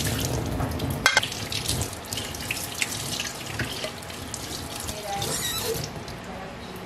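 Water splashes from a running tap into a metal sink.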